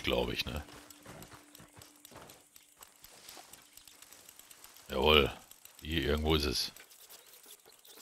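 Footsteps rustle through tall dry grass.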